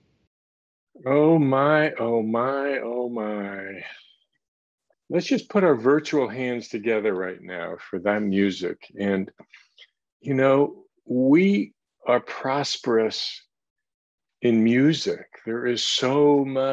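An older man talks with animation, close, through an online call.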